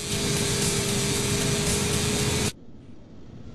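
A motorbike engine roars close by.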